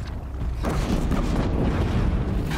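Sparks crackle and fizz from a small blast.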